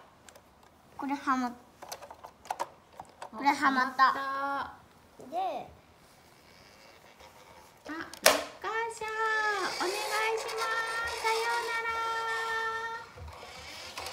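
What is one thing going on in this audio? Young children talk and babble nearby.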